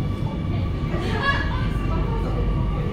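Train brakes squeal as the train slows into a station.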